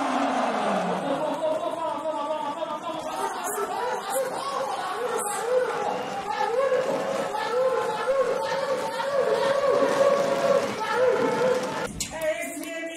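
A crowd chants loudly in a large echoing hall.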